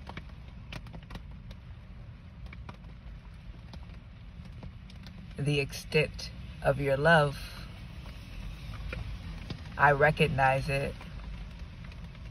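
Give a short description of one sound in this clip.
Rain patters and taps on a car windscreen.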